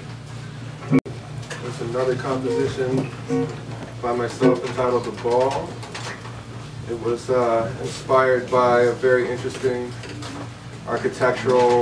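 A saxophone plays a melody.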